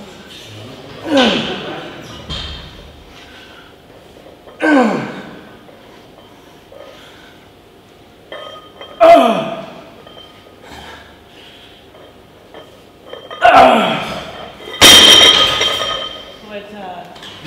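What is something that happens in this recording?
A man grunts loudly with effort, again and again.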